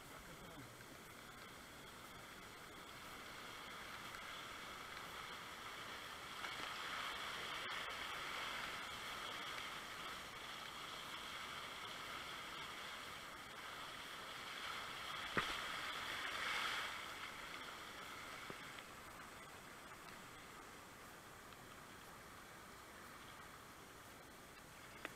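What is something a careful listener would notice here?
Whitewater rushes and roars close by.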